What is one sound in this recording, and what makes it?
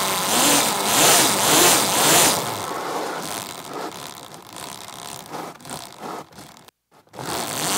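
Tyres of a quad crunch over gritty pavement.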